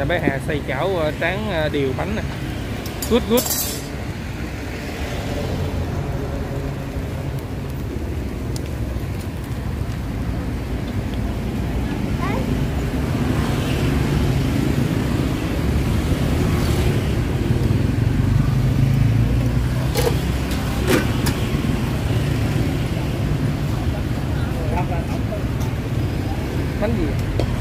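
A wood fire crackles under a pot.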